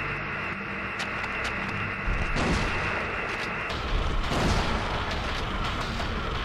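A pistol fires several shots in an echoing room.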